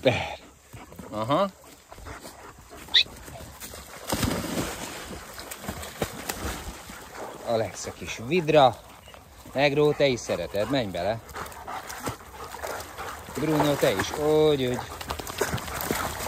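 Dogs splash and paddle through shallow water.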